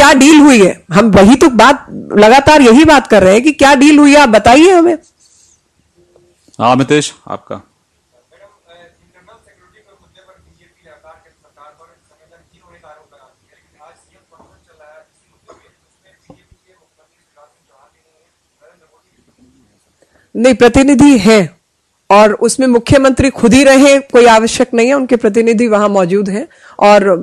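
A woman speaks forcefully into a microphone, close by.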